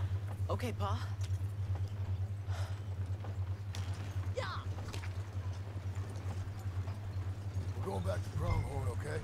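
A wooden wagon rumbles and creaks as it rolls along.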